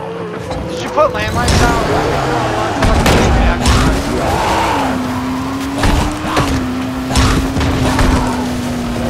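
Heavy thuds hit as the buggy strikes figures.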